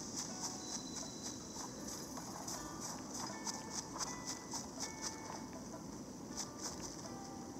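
Footsteps crunch quickly and rhythmically through snow.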